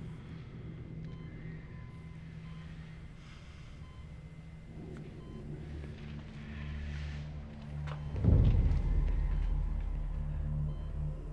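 A heart monitor beeps steadily.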